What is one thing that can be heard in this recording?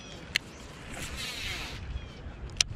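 A fishing rod swishes through the air in a cast.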